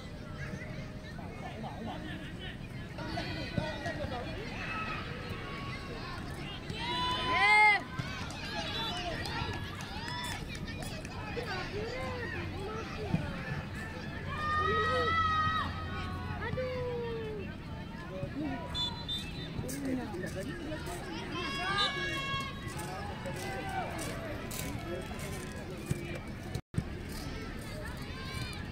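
Children shout and call out across an open field outdoors.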